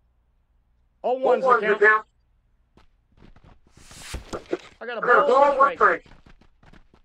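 A man talks into a close microphone in short, lively bursts.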